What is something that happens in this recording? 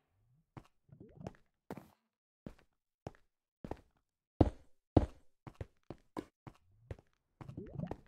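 Footsteps tap on stone at a steady pace.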